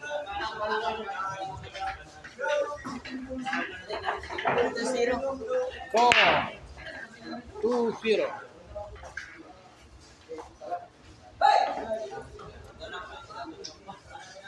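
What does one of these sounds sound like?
Several men and boys talk and call out with animation nearby.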